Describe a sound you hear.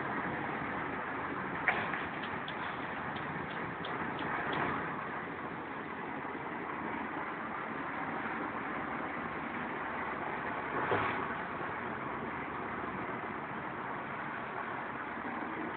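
Road noise and engine rumble fill a moving car.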